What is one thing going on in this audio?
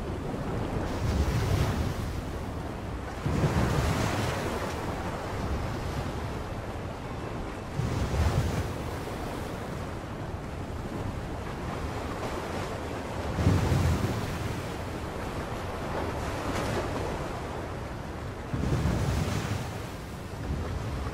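Waves crash and splash against rocks in loud surges.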